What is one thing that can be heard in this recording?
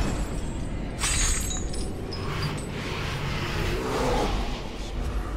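Magic spells whoosh and crackle in a game.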